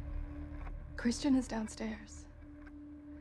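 A woman speaks calmly and quietly.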